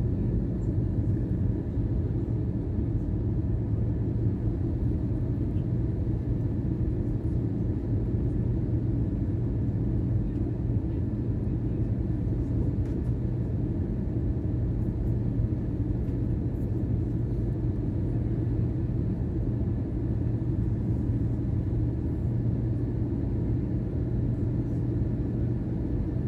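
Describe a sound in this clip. A jet engine roars steadily inside an airplane cabin.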